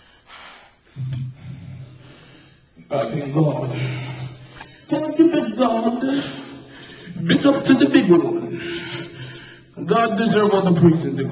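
A man speaks loudly into a microphone, heard through loudspeakers in an echoing room.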